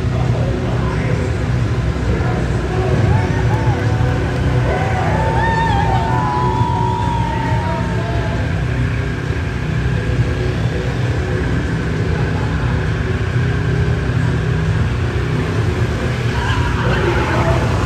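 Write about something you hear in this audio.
Tyres squeal as a car spins in a burnout.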